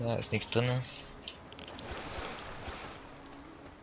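Water laps softly at a shore.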